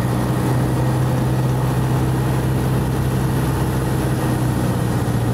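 A small propeller plane's engine drones loudly and steadily.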